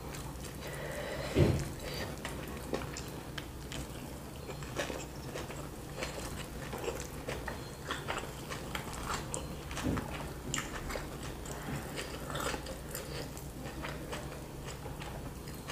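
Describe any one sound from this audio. Food crumbles and rustles as fingers pick it from a board.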